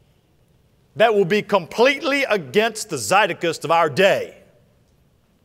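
A man speaks with emphasis through a microphone.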